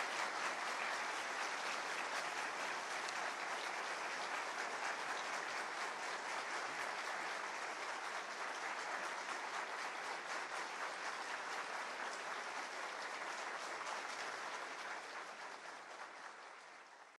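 A large crowd applauds steadily in a big echoing hall, fading toward the end.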